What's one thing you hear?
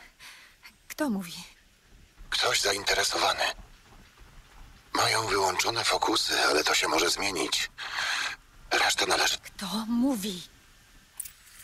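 A young woman speaks quietly and with puzzlement, close by.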